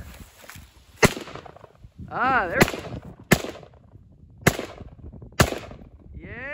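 A rifle fires loud shots outdoors.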